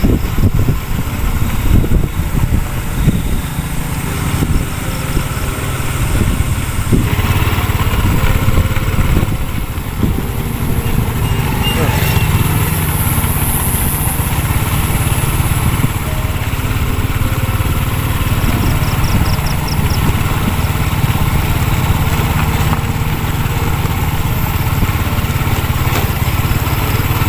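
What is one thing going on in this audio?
A motorcycle engine hums steadily close ahead.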